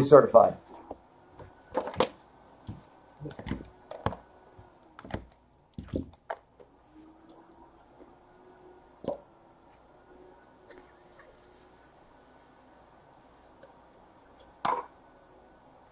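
Cardboard boxes knock and scrape together as hands handle them.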